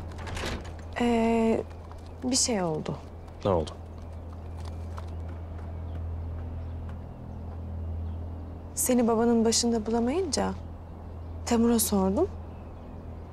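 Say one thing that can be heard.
A young woman speaks gently nearby.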